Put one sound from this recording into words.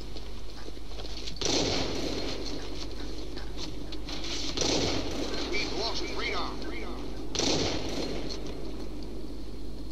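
Sniper rifle shots crack in a video game.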